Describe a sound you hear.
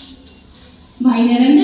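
A young woman speaks into a microphone and is heard over a loudspeaker.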